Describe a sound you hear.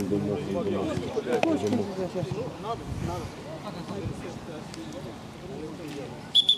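Men call out to each other on an open outdoor pitch.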